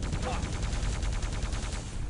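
A heavy gun fires rapid loud blasts.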